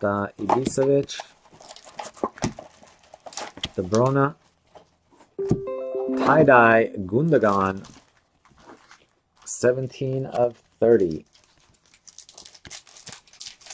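Trading cards rustle and slide as a hand flips through them.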